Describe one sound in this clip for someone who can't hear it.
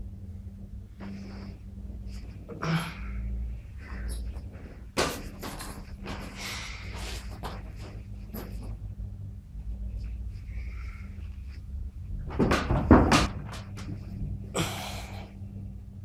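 Bedding and clothes rustle close by.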